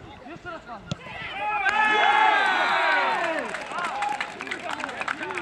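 Several men shout and cheer loudly outdoors.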